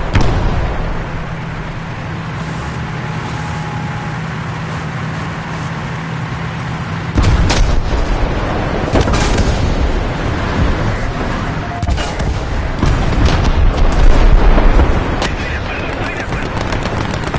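Tank tracks clatter and grind over the road.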